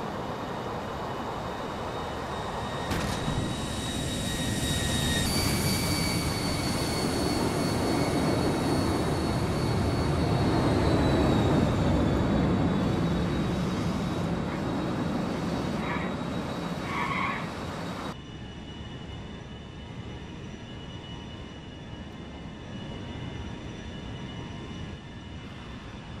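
A car engine roars steadily as a car drives along.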